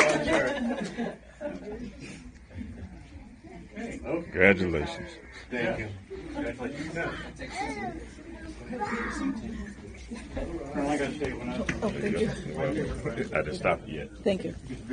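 Men and women chat quietly nearby in a room.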